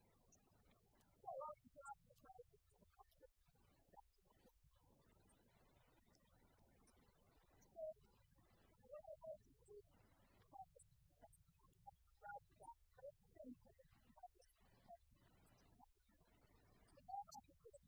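A woman lectures calmly into a microphone in a large room.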